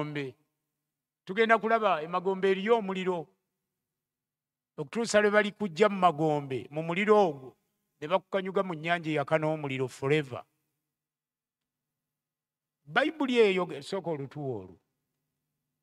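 A man speaks with animation into a microphone, in short bursts with pauses.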